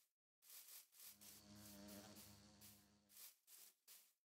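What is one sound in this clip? A bee buzzes close by.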